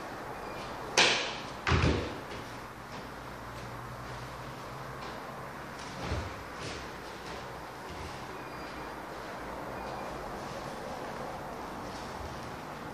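Bare feet thump and slide on a hard floor.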